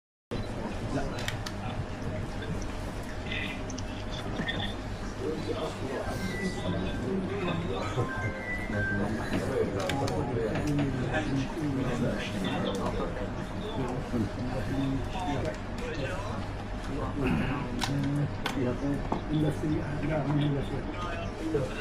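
Several men talk at once nearby.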